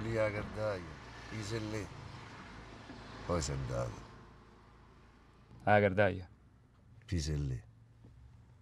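A man speaks quietly and calmly, close by.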